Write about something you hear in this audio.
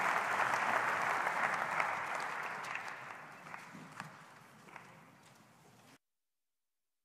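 An audience applauds in a large hall, and the clapping fades away.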